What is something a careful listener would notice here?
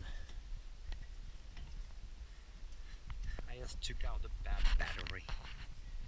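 An aluminium ladder clanks and creaks under climbing footsteps.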